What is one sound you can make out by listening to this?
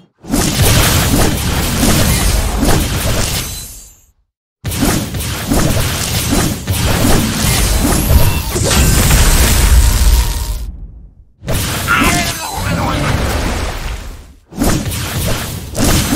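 Magic blasts and crackling lightning strikes boom in a fast battle.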